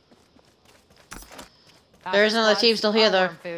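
Footsteps run up stone stairs.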